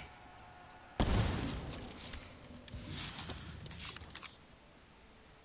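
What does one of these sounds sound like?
A futuristic gun fires a loud burst of blasts.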